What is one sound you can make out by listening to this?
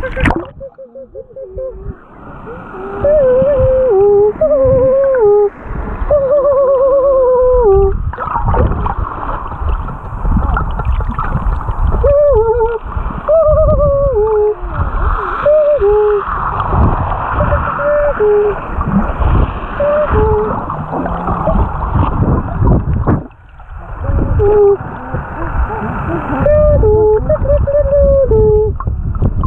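Water rushes and bubbles close by underwater.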